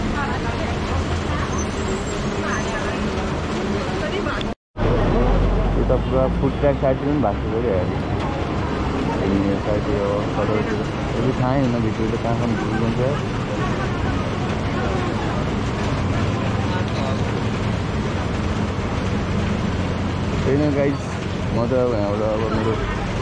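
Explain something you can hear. Traffic rumbles past on a wet road.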